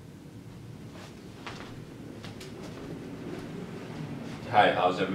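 A man walks with footsteps on the floor nearby.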